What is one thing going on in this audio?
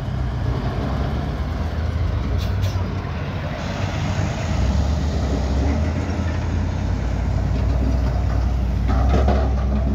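A heavy truck engine roars as the truck drives past close by.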